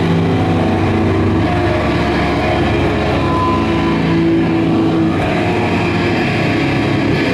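A drum kit is played with steady beats.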